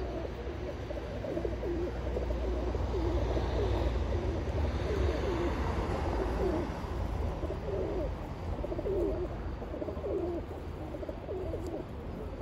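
Many pigeons coo in low, throaty calls close by.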